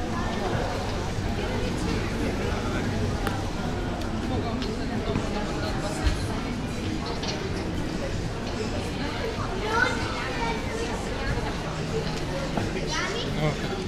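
A crowd of people chatters throughout, close and farther off.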